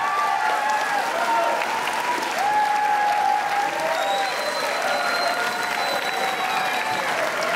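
A crowd of young people cheers and shouts loudly.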